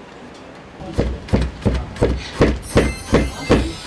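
A weaving comb thumps rhythmically against the threads of a loom.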